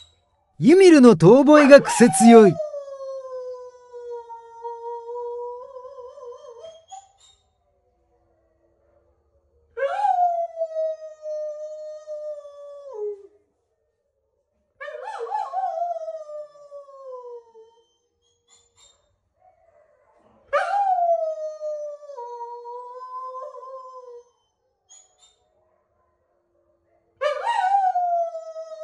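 A wolfdog howls in drawn-out, falling howls with short pauses between them.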